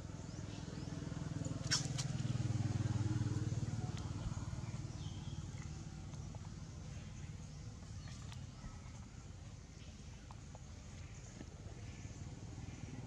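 A monkey chews and munches on food close by.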